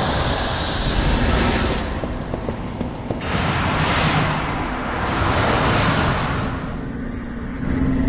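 Magical energy bursts with loud, rushing whooshes.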